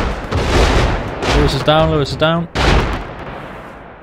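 Rapid gunfire bursts out loudly, close by.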